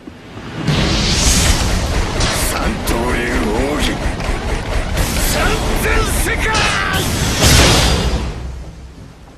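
Swords swish and clash loudly.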